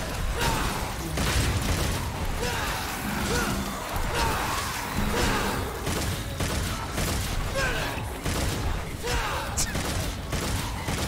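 Gunshots and blade clashes crack in quick bursts.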